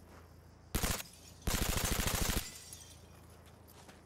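Window glass shatters and breaks.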